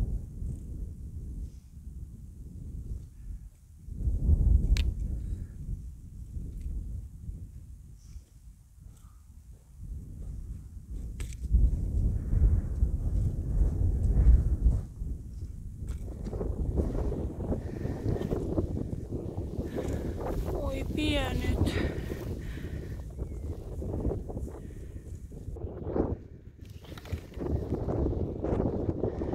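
Wind blows in gusts outdoors.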